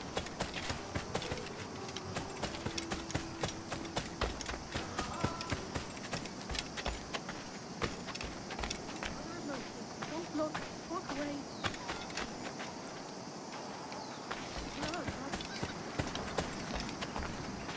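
Footsteps run over ground.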